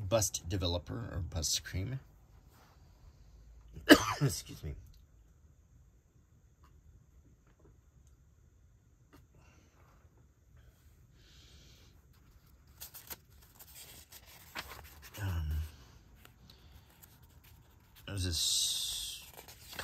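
Fingers brush and rub across a paper page.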